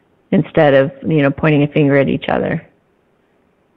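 A middle-aged woman speaks calmly and closely into a microphone.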